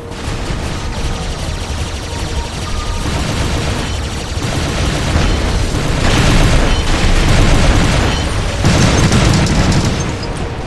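Heavy metal footsteps thud and clank.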